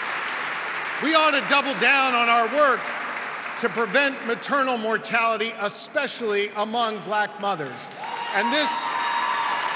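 A man speaks calmly through a microphone over loudspeakers in a large echoing hall.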